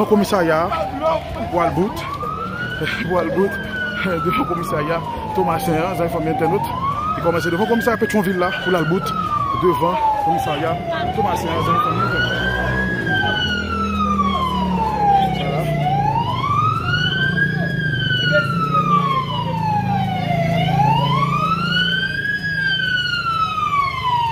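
A crowd of people shouts and talks outdoors.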